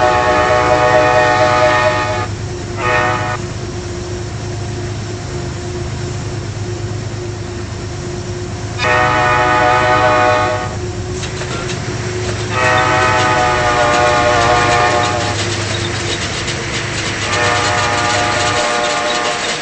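A diesel locomotive engine rumbles as the train approaches and passes.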